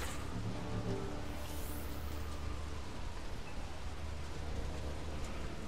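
An energy beam hums and crackles steadily.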